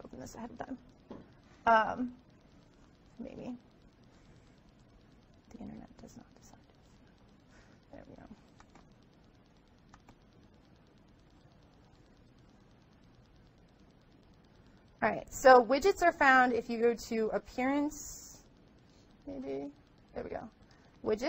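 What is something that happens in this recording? A woman speaks into a microphone, pausing often.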